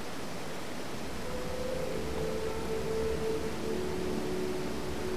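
A waterfall splashes and rushes.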